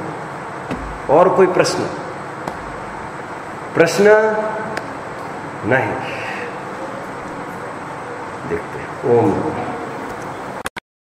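A man speaks calmly and clearly in short phrases, close by.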